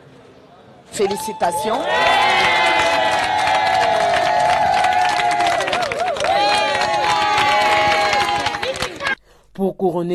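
A group of women sing together with excitement.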